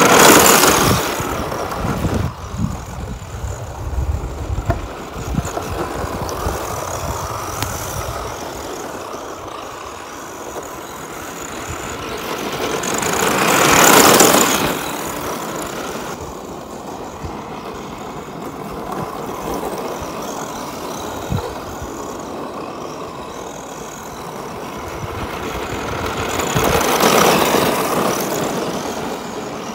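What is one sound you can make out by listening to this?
Small electric cars whine as they race past, rising and falling as they pass close.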